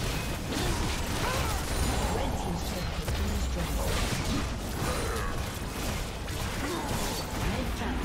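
Magic spells crackle and burst in a fast video game battle.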